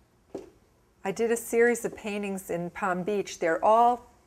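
A middle-aged woman speaks calmly and clearly into a close microphone.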